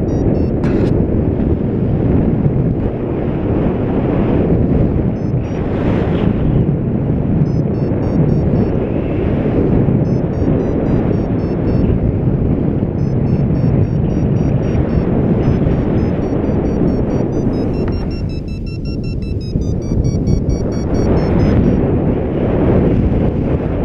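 Strong wind rushes and buffets steadily, outdoors high in the air.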